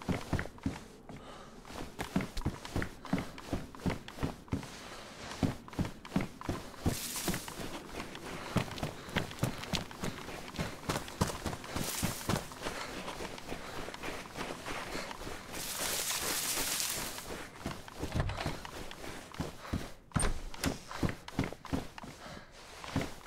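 Footsteps thud on a wooden floor.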